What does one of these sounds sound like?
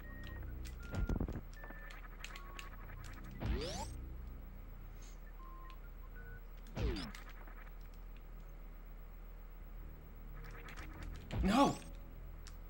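Video game sound effects whoosh in quick rising and falling sweeps.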